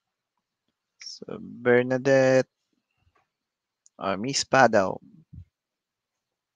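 A young man speaks calmly into a headset microphone, close and clear.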